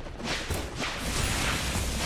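Fantasy battle sound effects clash and whoosh.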